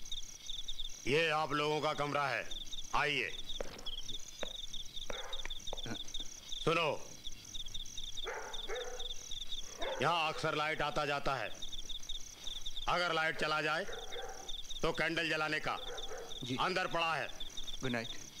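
A middle-aged man speaks nearby in a deep, emphatic voice.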